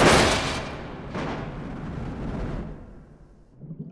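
A car crashes and tumbles with loud metal impacts.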